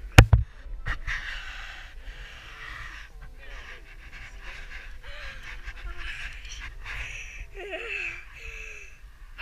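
Water laps and splashes gently around a ladder.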